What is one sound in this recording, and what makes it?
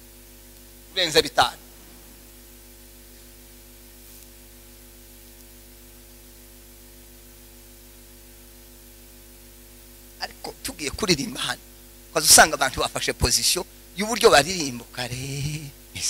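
A man preaches with animation into a microphone, his voice carried over loudspeakers.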